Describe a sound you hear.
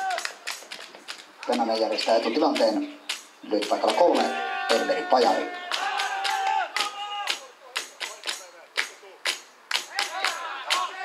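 A group of young women chant and sing together loudly outdoors.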